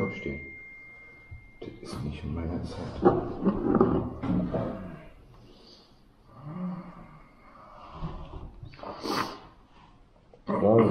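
A second man talks nearby.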